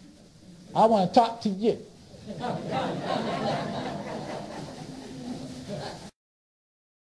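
A man speaks loudly and with animation close by, then talks on more calmly.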